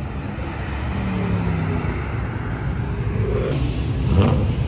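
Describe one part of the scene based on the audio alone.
A second sports car's engine revs and roars past.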